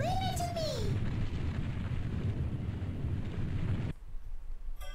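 A small spaceship engine rumbles low and then cuts off.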